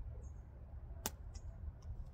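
A bow limb clicks sharply into place.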